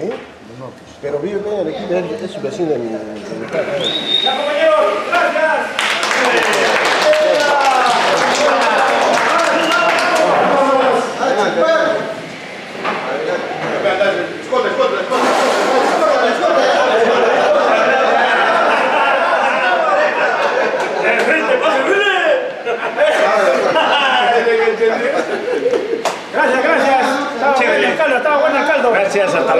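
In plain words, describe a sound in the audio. A group of men shout and cheer loudly indoors.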